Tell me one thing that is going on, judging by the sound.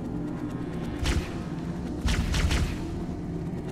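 An energy gun fires a few sharp, zapping shots.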